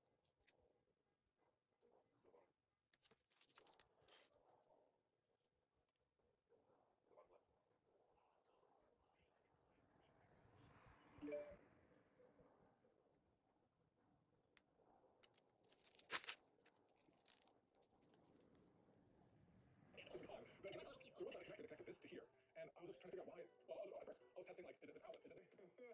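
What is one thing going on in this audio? Masking tape peels off paper with a crackling rip.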